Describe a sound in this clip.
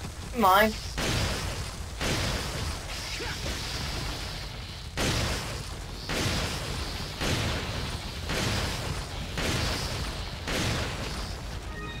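Gunshots ring out with an echo.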